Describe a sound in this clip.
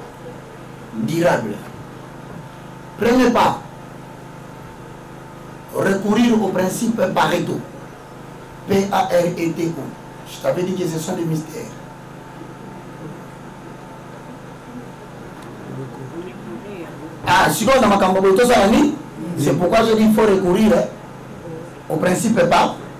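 A man speaks with animation into a microphone, in bursts with pauses.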